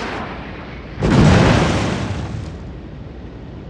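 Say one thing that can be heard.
Heavy naval guns fire with a loud, deep boom that rolls away.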